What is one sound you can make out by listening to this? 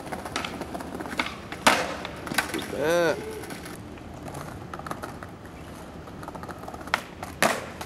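Skateboard wheels roll and rattle over paving stones.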